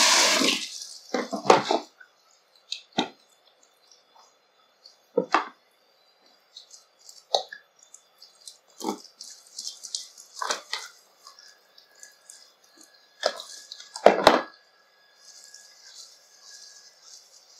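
Hands squelch and rub through wet hair.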